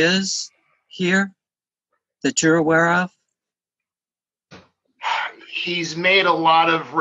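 A middle-aged man speaks calmly and close, heard through a computer microphone, with pauses.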